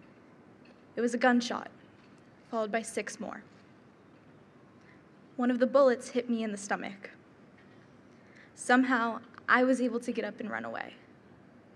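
A young woman speaks calmly into a microphone, with short pauses.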